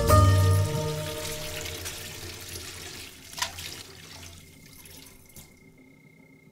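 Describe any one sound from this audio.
Water runs from a tap and splashes onto metal dishes.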